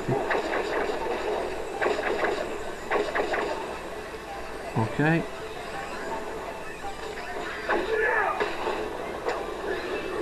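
Cartoon blasts and zaps ring out as a game character fires at enemies.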